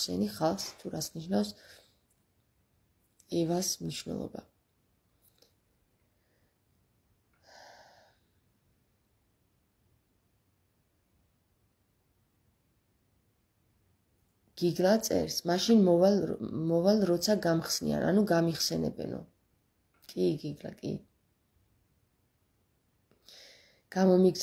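A woman speaks calmly and close by, with long pauses.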